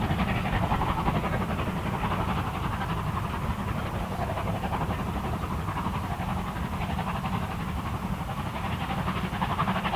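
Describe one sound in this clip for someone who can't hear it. Wind blows steadily and gusts outdoors in the open.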